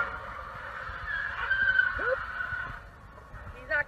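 Car tyres screech on asphalt.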